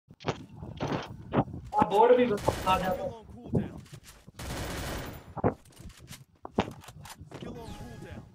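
Footsteps thud on hard ground at a run.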